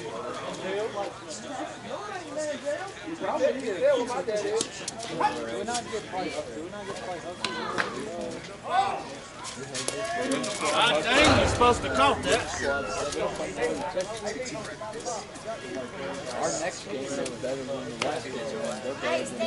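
Men talk and call out across an open field outdoors.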